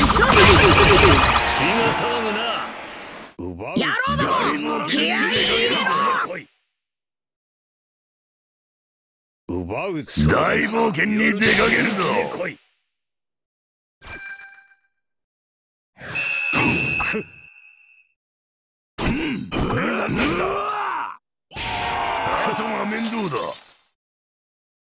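Video game fight effects clash and burst in short loud spells.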